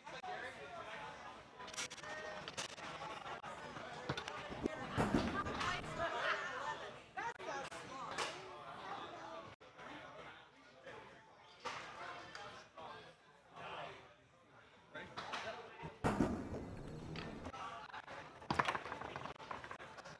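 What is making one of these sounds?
Foosball rods slam against a table.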